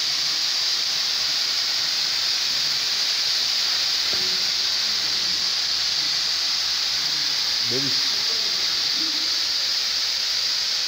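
Fire extinguishers hiss loudly as they spray out gas.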